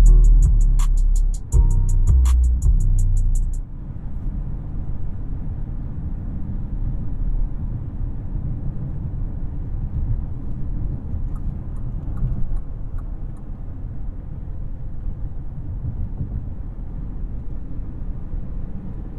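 Tyres rumble on asphalt, heard from inside a car's cabin.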